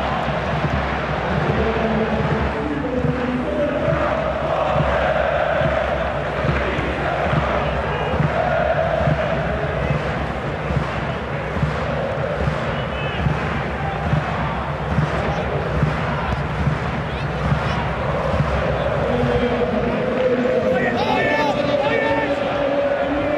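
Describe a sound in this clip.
A large stadium crowd chants and sings steadily.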